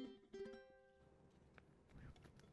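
A ukulele is plucked, its notes ringing out.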